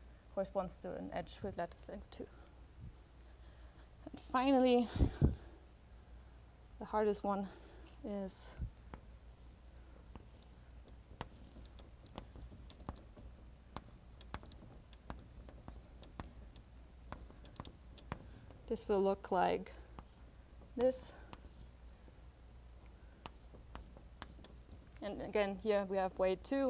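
A young woman lectures calmly into a microphone, with pauses.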